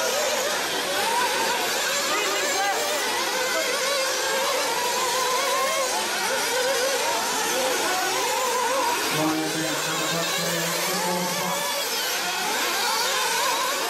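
Small model car engines whine high and rev up and down as the cars race.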